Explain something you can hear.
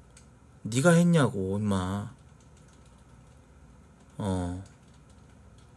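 A man speaks into a close microphone in short bursts with long pauses.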